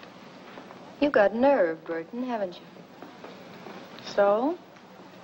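A young woman speaks calmly in reply.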